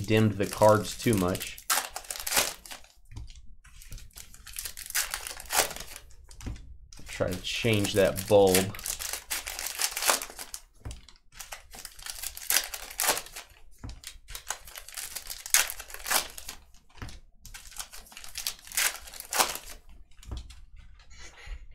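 Foil card packs crinkle and tear open.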